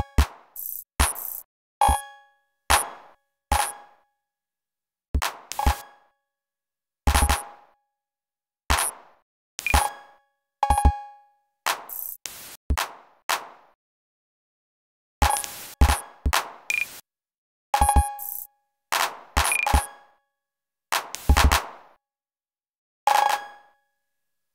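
Electronic drum hits and glitchy synth blips play in short, irregular bursts.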